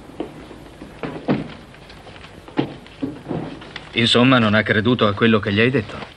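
A leather briefcase is handled and its catch clicks open.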